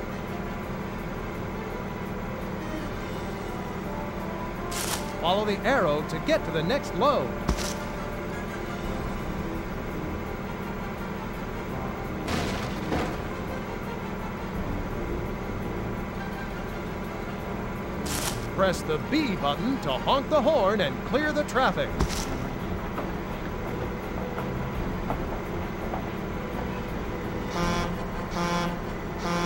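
A dump truck engine rumbles steadily.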